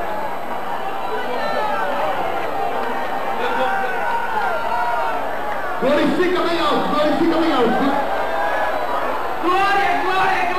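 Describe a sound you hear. A crowd of men and women pray aloud together, in a lively and excited way, outdoors.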